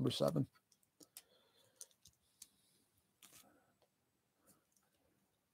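Plastic toy bricks click softly as they are snapped together.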